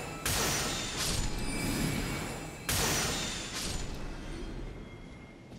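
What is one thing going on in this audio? A magic spell bursts with a loud, rushing shimmer.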